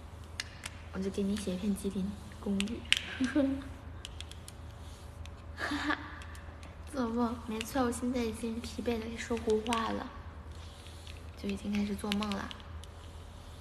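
A young woman talks casually and close to a microphone.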